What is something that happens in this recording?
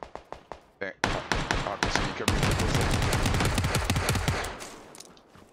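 A man speaks with animation into a headset microphone.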